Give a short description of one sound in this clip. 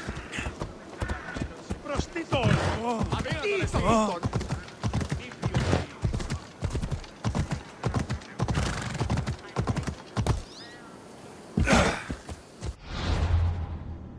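A horse gallops with hooves thudding on the ground.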